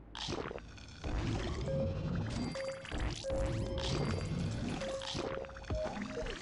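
Bright game chimes ring repeatedly as rewards are collected.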